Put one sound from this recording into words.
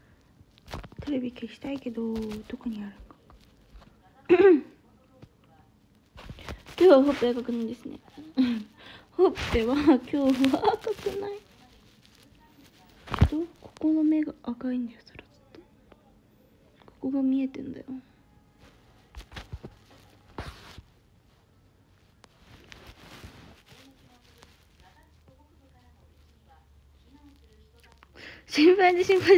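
A young woman speaks softly and casually, close to the microphone.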